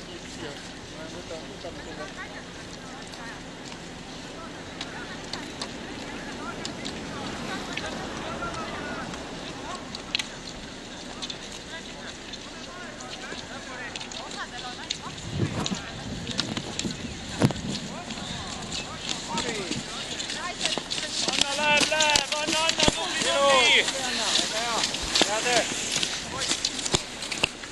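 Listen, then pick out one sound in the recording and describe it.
A crowd of men and women talks and cheers outdoors, growing louder and more excited.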